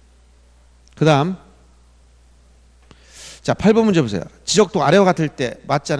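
A middle-aged man speaks with animation into a handheld microphone.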